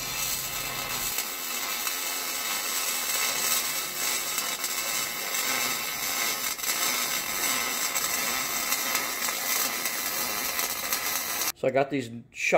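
An electric welder buzzes and crackles steadily.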